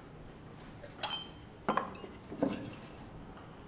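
Glass bottles clink together.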